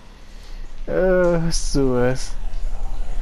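A man speaks in a low, worried voice.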